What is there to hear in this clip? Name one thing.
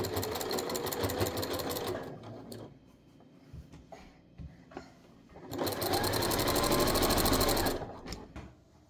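A sewing machine runs fast, stitching in rapid bursts.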